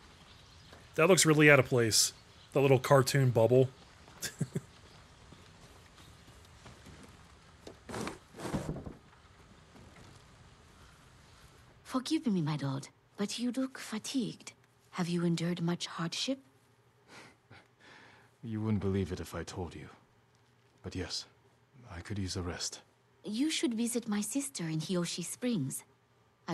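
An adult man talks with animation close to a microphone.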